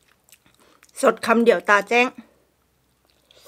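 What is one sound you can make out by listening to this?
A woman slurps noodles loudly.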